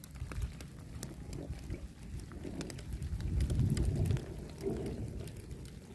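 Raindrops patter steadily onto water, outdoors.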